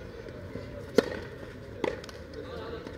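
Tennis balls pop sharply off rackets outdoors.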